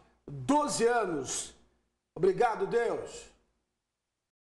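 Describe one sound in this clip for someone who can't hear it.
A man speaks calmly and clearly into a microphone close by.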